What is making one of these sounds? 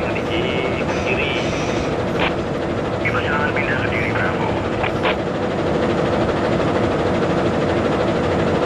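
Train wheels clatter over rails.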